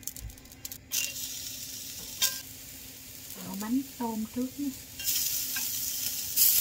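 Onions sizzle in hot oil.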